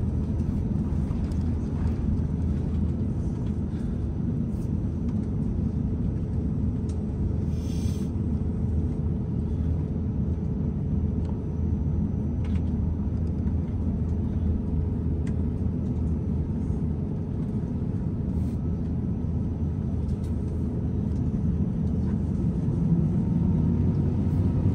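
Jet engines hum and rumble steadily inside an airliner cabin.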